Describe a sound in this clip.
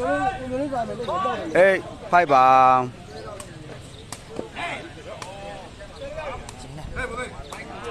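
Young men shout and call out loudly nearby, outdoors.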